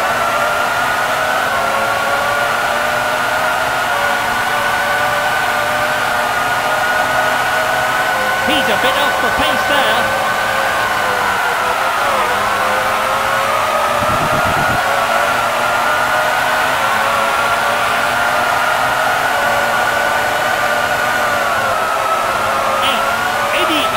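A racing car engine whines at high pitch, rising and dropping as the car speeds up and slows for bends.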